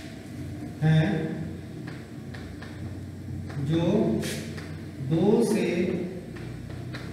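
A man speaks slowly and calmly, close by.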